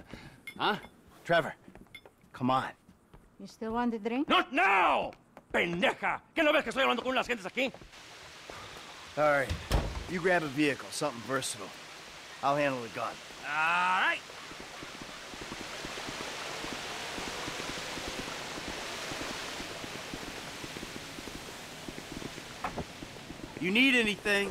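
Men talk with animation, one shouting at times.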